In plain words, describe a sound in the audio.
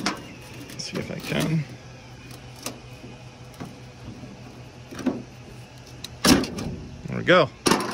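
A screwdriver scrapes and clicks against a thin metal strip.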